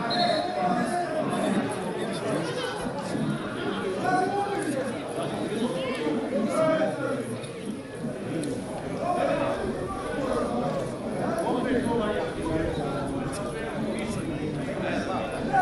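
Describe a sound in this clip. Men shout and argue outdoors, heard from a distance.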